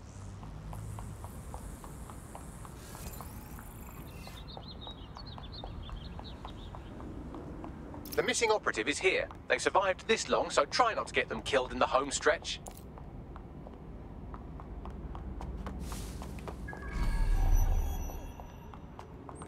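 Footsteps run quickly across hard pavement.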